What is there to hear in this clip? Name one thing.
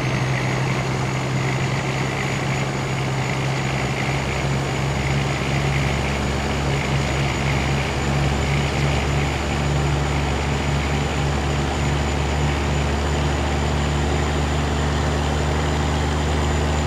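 A truck engine drones steadily as the rig drives along.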